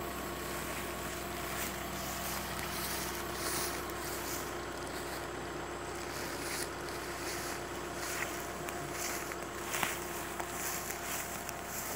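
Leaves and grass rustle underfoot.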